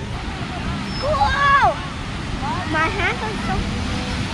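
A young boy shouts excitedly nearby.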